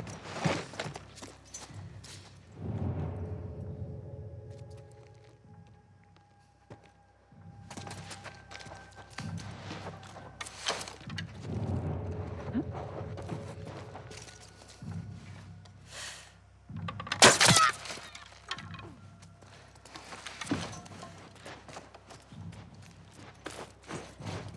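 Clothing and gear rustle and scrape as a person crawls through a narrow gap in a wooden wall.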